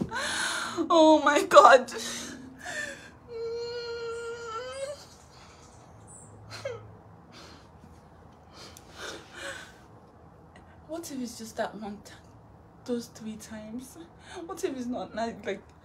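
A young woman speaks close by, loudly and with distress, at times wailing.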